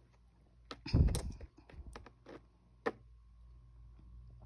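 Glass marbles click against each other.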